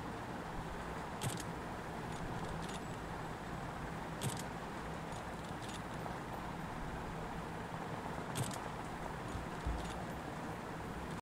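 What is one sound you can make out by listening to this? Steady rain patters all around.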